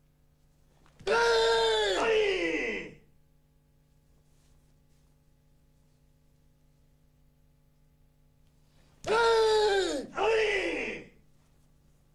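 A man lets out loud, sharp shouts.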